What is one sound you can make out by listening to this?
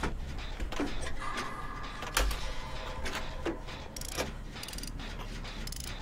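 A machine clanks and rattles as someone works on it.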